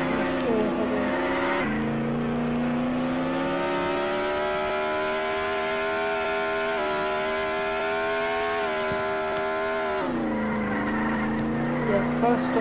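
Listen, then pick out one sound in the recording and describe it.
A game's off-road buggy engine revs as it accelerates, then eases off.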